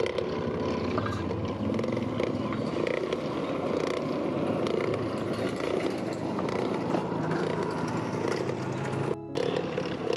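A hand-cranked forge blower whirs as it is cranked, blowing air into a charcoal fire.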